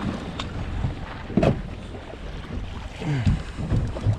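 A fishing reel clicks as its handle is cranked.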